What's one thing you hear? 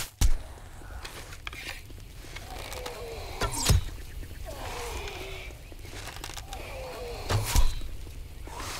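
A bow twangs as arrows are loosed, one after another.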